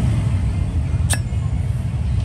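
A metal lighter lid snaps shut with a click.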